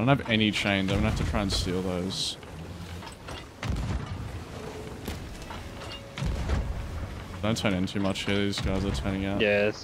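A cannon fires with deep, heavy booms.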